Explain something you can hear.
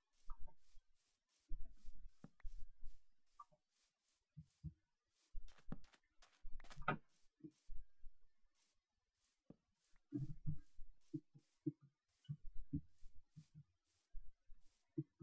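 Footsteps swish steadily through grass.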